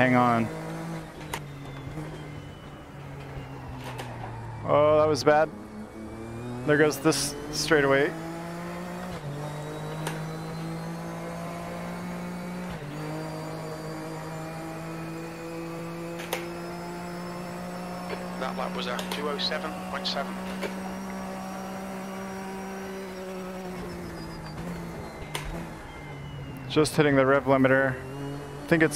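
A racing car engine drones steadily, rising and falling in pitch with the gears.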